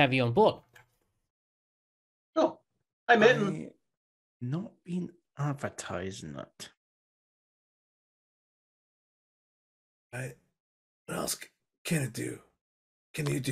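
Several men talk with animation over an online call, in short bursts with pauses.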